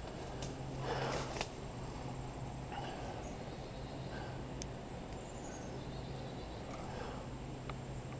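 A chainsaw engine idles steadily close by.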